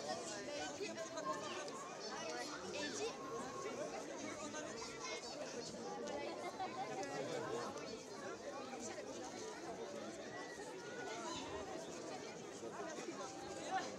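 A crowd of children and adults chatter and shout outdoors at a distance.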